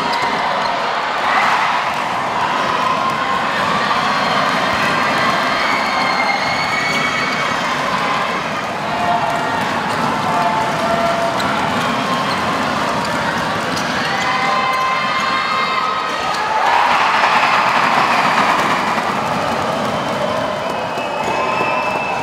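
A large crowd cheers in an echoing hall.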